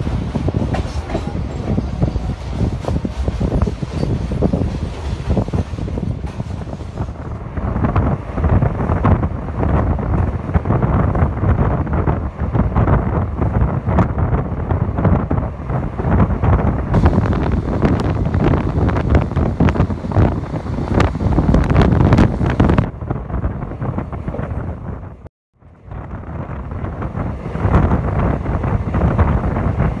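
A passenger train's wheels clatter over rail joints at speed.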